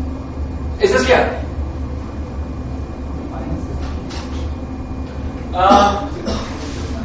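A man speaks loudly in short bursts, slightly echoing.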